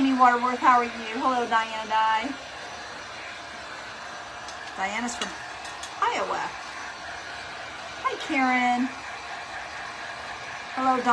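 A middle-aged woman talks close by with animation.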